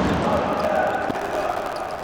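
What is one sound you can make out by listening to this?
A ball is kicked hard.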